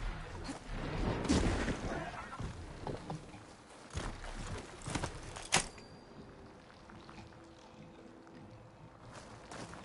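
Heavy metallic blows strike in a short fight.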